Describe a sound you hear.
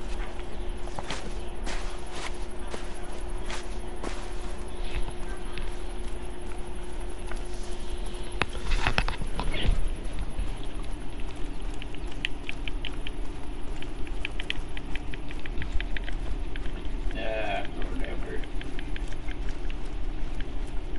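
Footsteps crunch through sand and dry grass.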